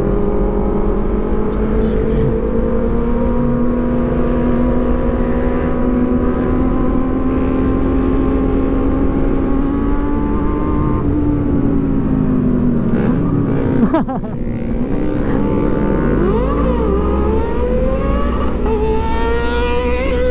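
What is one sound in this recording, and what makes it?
Other motorcycle engines rev nearby.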